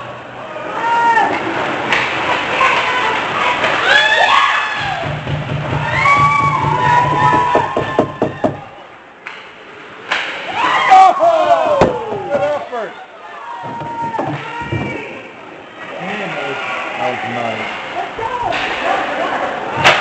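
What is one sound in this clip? Young men shout to each other across an echoing rink.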